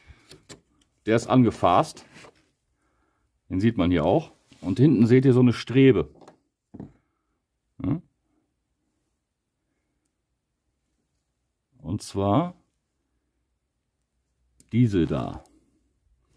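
A man speaks calmly close by, in short bursts.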